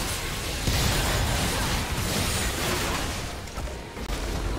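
Magic spells whoosh and crackle during a loud battle.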